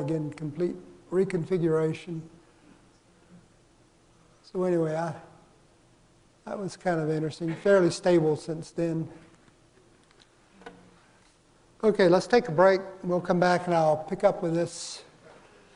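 An elderly man lectures calmly through a microphone in a large hall, pausing between phrases.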